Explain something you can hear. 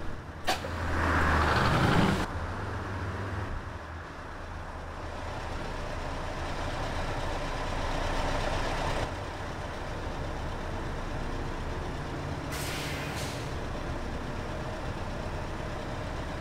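A bus engine rumbles with a low, steady hum.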